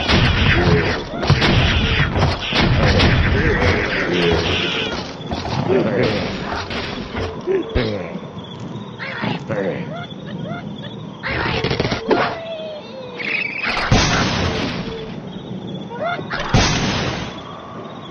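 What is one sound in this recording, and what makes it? Game blocks crash and clatter as a structure collapses.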